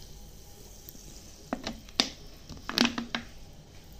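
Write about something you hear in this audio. A plastic bottle knocks down on a hard counter.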